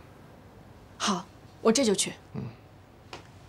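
A young woman answers briefly and politely.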